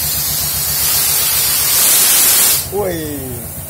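A handheld tool grinds with a loud, steady hiss.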